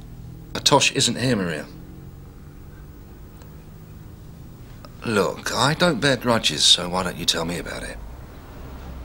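A middle-aged man speaks calmly into a telephone close by.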